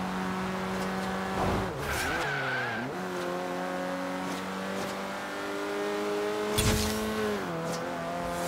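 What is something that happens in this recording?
A car engine hums steadily at high speed, its pitch dropping and rising as gears shift.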